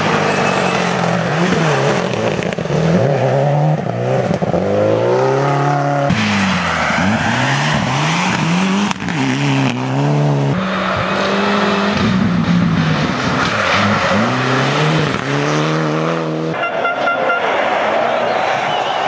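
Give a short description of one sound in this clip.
Rally car engines roar and rev hard through bends.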